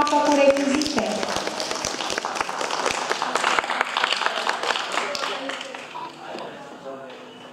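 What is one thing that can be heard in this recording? A woman claps her hands.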